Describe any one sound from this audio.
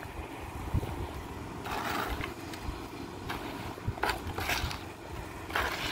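A trowel scrapes and pats wet concrete.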